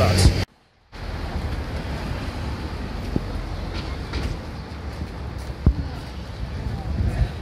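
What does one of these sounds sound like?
A car's engine hums as it passes slowly.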